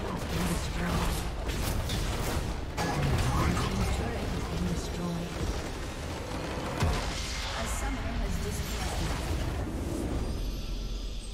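Spell blasts and weapon hits crash loudly in a game battle.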